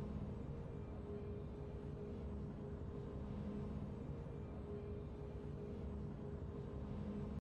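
Triumphant game music plays steadily.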